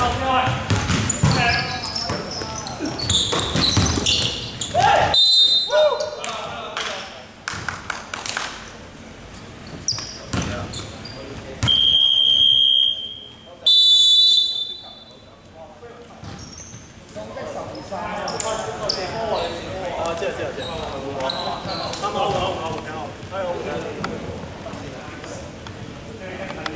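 Men shout and call out to each other during play.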